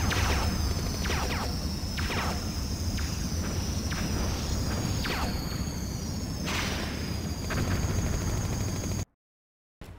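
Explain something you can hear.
A jet engine roars steadily as a fighter plane flies.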